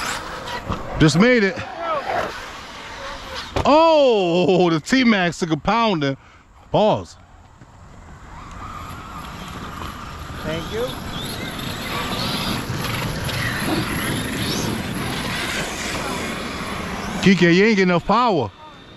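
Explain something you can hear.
A small electric motor of a remote-control car whines, rising and falling in pitch as it speeds up and slows down.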